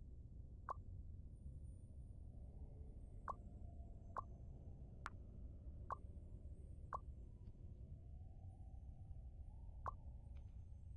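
Short soft clicks sound now and then.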